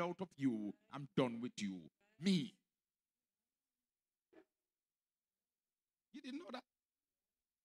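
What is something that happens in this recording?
A man preaches with animation through a microphone, in bursts with pauses.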